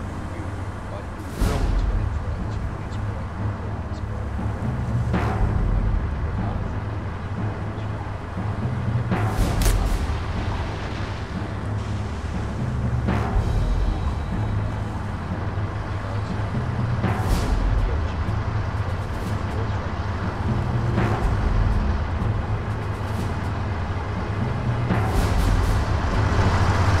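Tank engines rumble steadily.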